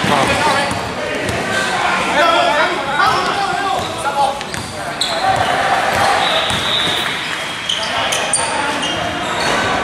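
Basketball players' sneakers squeak on a hardwood court in a large echoing gym.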